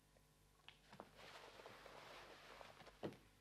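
A coat rustles as it is hung on a hook.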